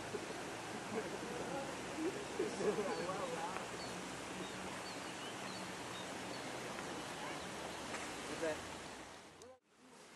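Wind rustles through palm fronds outdoors.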